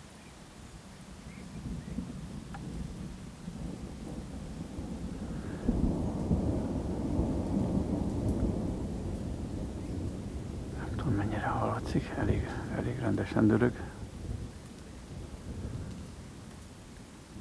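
Wind rumbles and buffets outdoors by the water.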